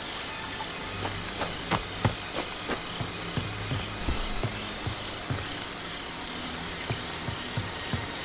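Footsteps thud on wooden steps and boards.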